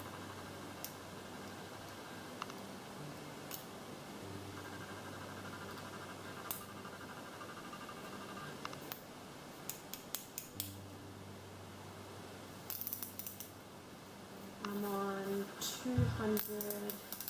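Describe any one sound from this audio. A plastic pen clicks as it is handled.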